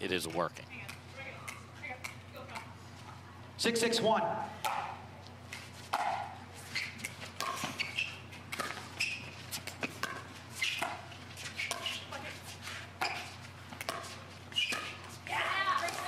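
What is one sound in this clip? A paddle strikes a ball with sharp pops, back and forth.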